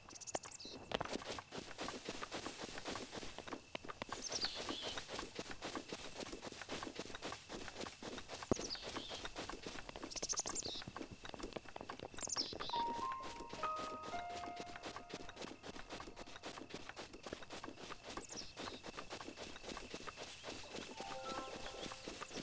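Footsteps rustle through tall grass at a run.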